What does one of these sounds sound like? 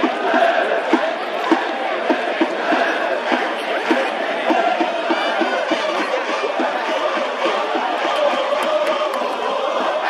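A large stadium crowd cheers and chants steadily in the open air.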